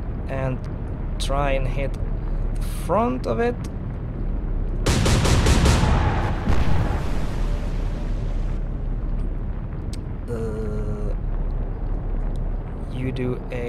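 Rough sea waves churn and crash.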